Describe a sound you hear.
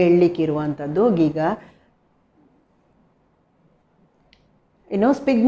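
A middle-aged woman speaks clearly and calmly into a close microphone, with pauses.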